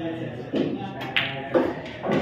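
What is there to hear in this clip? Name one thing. A cue strikes a ball with a sharp click.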